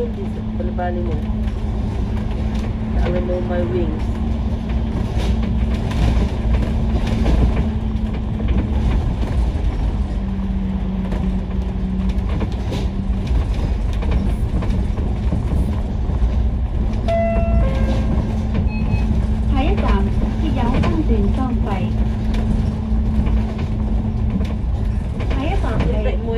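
Traffic passes by on a wet road outside.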